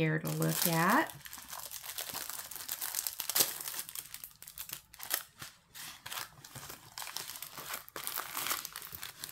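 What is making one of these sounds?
A stiff plastic sheet crinkles and rustles as it is handled.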